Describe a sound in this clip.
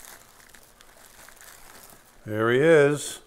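Plastic bubble wrap crinkles and rustles under handling.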